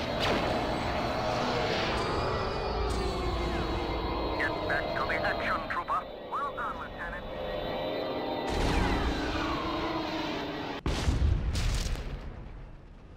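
Spaceship engines roar steadily, then fade away.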